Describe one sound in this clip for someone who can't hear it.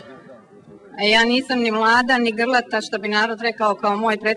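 A woman speaks with animation into a microphone over a loudspeaker.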